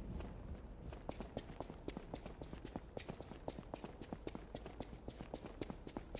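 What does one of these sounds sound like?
Quick footsteps tap on a hard stone floor.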